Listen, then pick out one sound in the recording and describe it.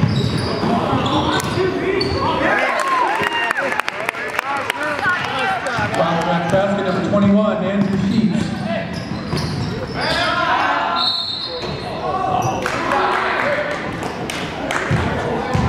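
Sneakers squeak sharply on a hardwood floor in an echoing gym.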